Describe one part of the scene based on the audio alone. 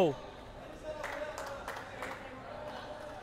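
A ball is kicked on a hard indoor court.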